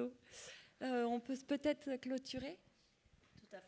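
A woman speaks into a microphone with animation, heard through loudspeakers in a large hall.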